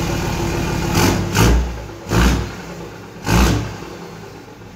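A truck engine revs loudly in short bursts.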